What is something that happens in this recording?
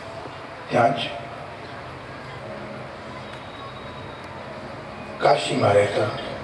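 A young man speaks into a microphone through loudspeakers, with pauses between phrases.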